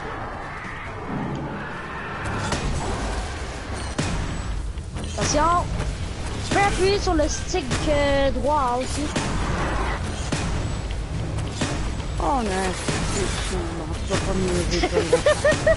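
Gunfire and energy blasts crackle in a fast fight.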